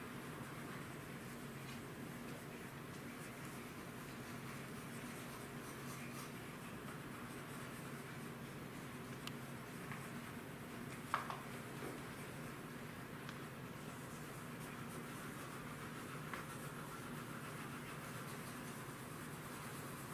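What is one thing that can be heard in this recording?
Pastel chalk scratches softly across paper.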